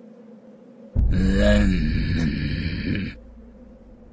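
A creature speaks in a deep, distorted voice.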